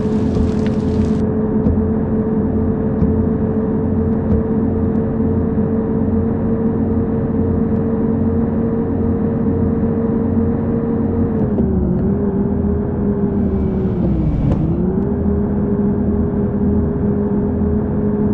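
Tyres roll on a highway.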